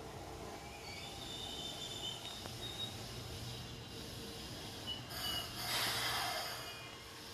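Train brakes squeal as a train slows down.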